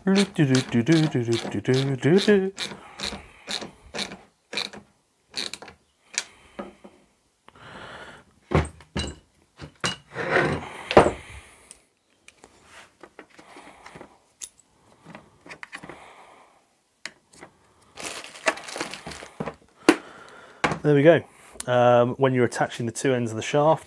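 Plastic parts click and knock as they are handled and fitted together.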